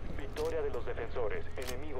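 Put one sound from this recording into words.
A gun fires a burst of shots.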